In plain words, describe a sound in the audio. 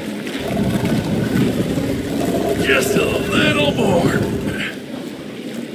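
A heavy stone block scrapes and grinds across a stone floor.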